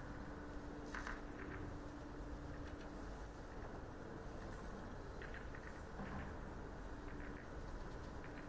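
Snooker balls click softly as they are set down on a table.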